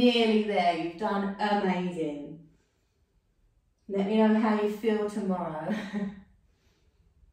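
A young woman speaks calmly and softly into a close microphone.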